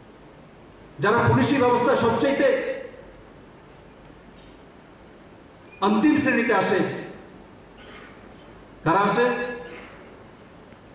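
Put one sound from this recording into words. A man speaks forcefully into a microphone in short bursts, with pauses between them.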